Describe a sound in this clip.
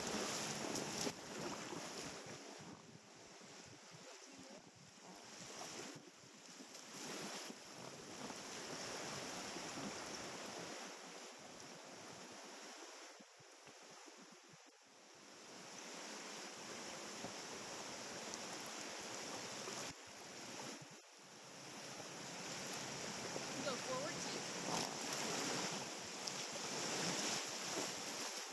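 River water rushes and splashes against a raft.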